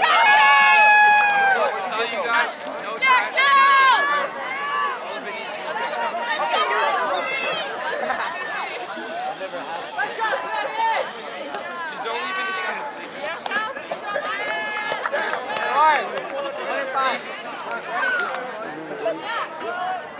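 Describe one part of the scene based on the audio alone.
A crowd of young people cheers, shouts and whistles loudly outdoors.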